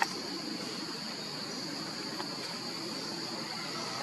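Fingers rustle through a monkey's fur.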